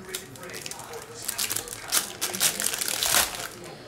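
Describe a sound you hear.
A foil wrapper crinkles and tears as hands open a pack.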